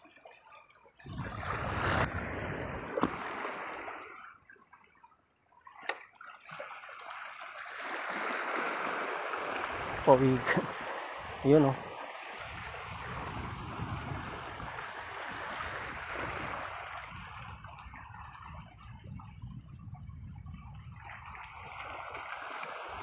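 Wind blows across open water, gusting against the microphone.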